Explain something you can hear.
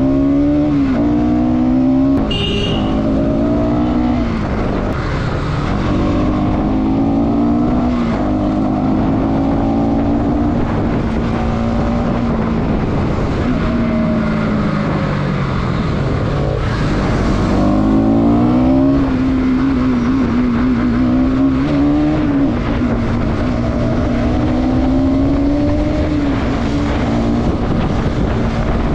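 A motorcycle engine hums steadily and revs up and down as the bike rides.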